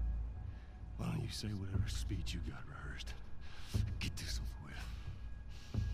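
A middle-aged man speaks roughly and defiantly, close by.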